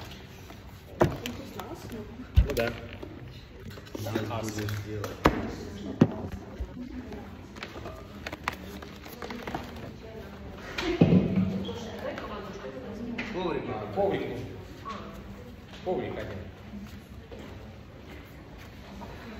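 Bare feet thud and patter on a wooden floor.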